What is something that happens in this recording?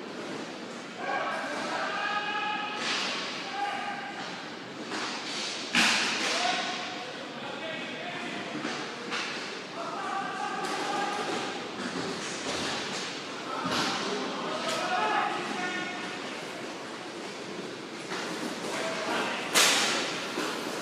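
Players shout to each other across an echoing indoor rink.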